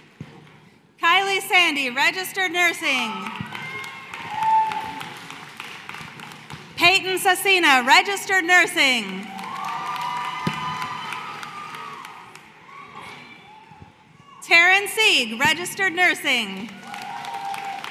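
A crowd cheers and whistles loudly in bursts.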